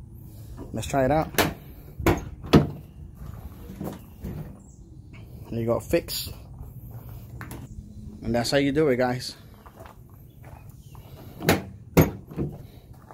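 A tailgate handle clicks and clunks as it is pulled.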